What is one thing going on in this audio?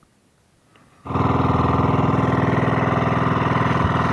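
A boat's motor starts up and runs with a loud, steady, rapid chug.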